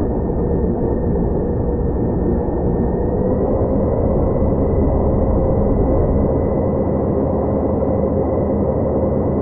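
Jet engines roar steadily with a high, slightly rising whine.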